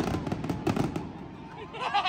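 Fireworks boom and crackle.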